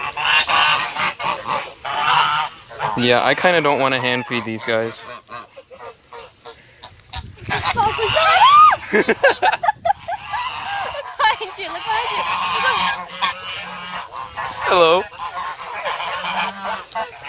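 Geese honk loudly close by.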